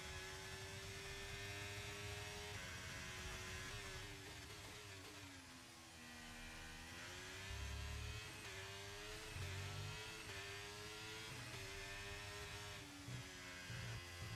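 A racing car engine screams at high revs, dropping in pitch as it brakes and rising again as it speeds up through the gears.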